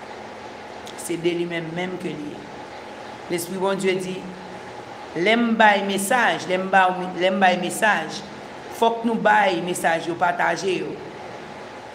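A woman speaks calmly and close to a microphone, in short phrases with pauses.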